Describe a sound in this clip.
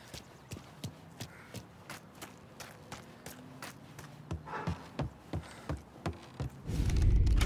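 Footsteps crunch on gravel and thump up wooden stairs.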